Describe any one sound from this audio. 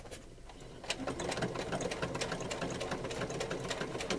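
A sewing machine hums and stitches steadily.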